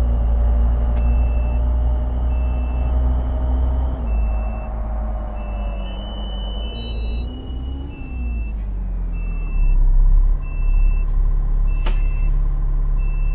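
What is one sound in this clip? A bus turn signal ticks at an even pace.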